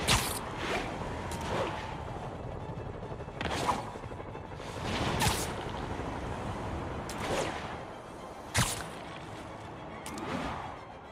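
Wind rushes past steadily during fast swinging flight.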